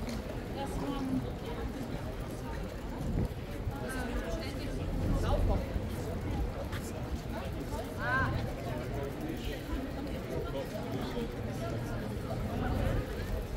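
A crowd of people chatters and walks across an open square outdoors.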